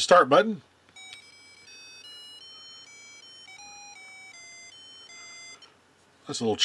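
A handheld electronic game plays a short, high beeping tune.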